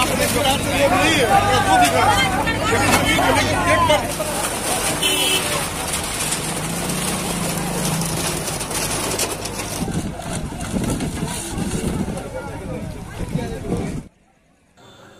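An excavator engine rumbles close by.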